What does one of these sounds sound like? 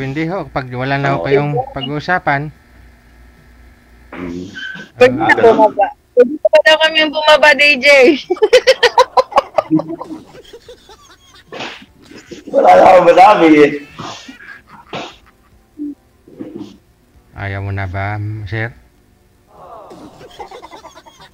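A middle-aged man talks and laughs over an online call.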